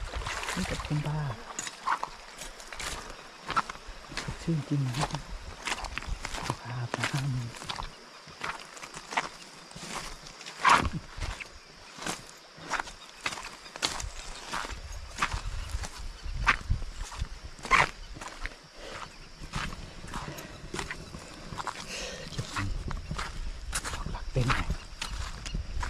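Footsteps crunch on loose stones and gravel.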